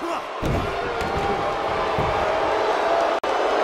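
A wrestler's body thuds heavily onto a ring mat.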